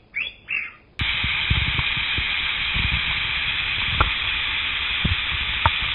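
A shallow stream rushes and splashes over rocks.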